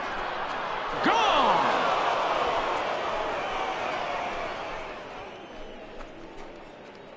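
A crowd cheers loudly, then the cheering slowly fades.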